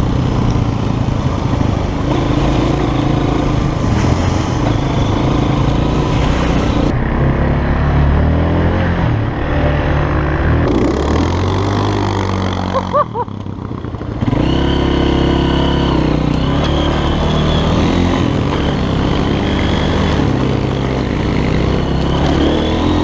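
A dirt bike engine revs and roars up close.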